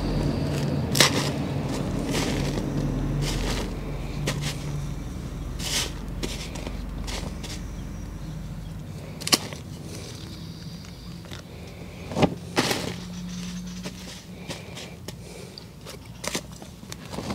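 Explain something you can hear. A plastic pot knocks against the ground.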